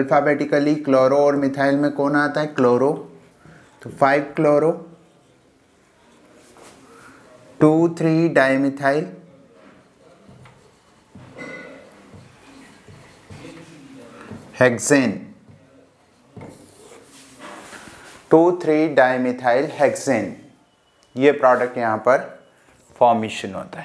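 A man speaks calmly through a close microphone, in pauses.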